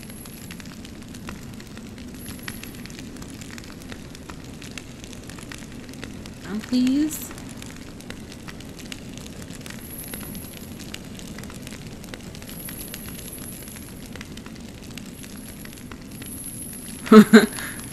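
A metal chain creaks and rattles as someone climbs it.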